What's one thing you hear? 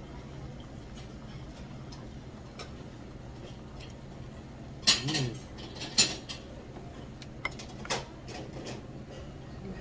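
Chopsticks click against a bowl.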